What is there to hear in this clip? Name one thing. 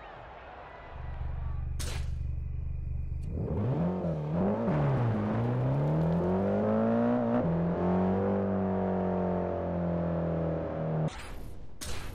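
A car engine revs hard, climbing in pitch and dropping back with each gear change.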